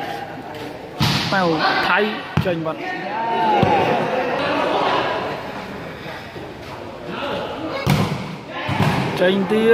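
A ball is kicked with sharp thumps.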